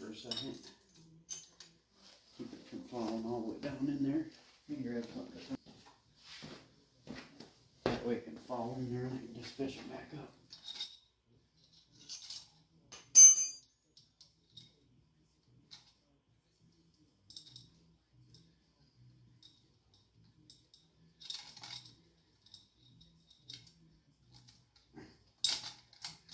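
Metal engine parts clink and scrape as they are handled.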